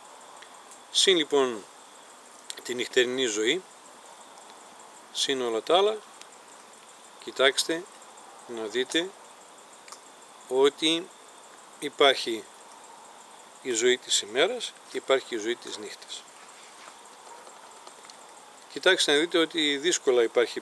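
A middle-aged man speaks calmly and slowly close to the microphone, with pauses.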